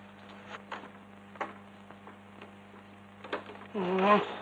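Wooden window shutters knock and rattle as they are opened.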